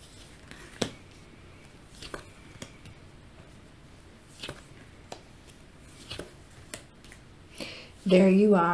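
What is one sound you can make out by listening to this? Cards tap and slide softly onto a cloth-covered table.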